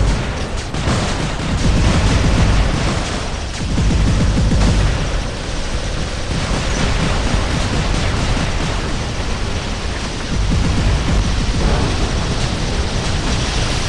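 Energy beams blast and crackle continuously.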